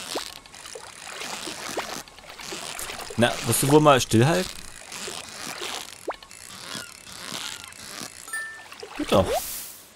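A fishing reel whirs and clicks.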